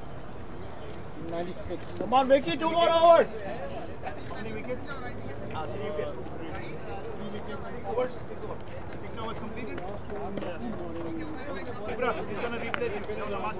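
Men talk casually at a distance outdoors.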